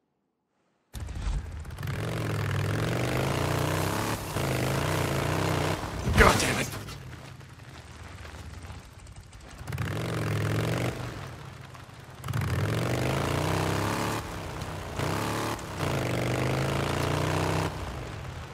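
A motorcycle engine revs and hums, rising and falling in pitch.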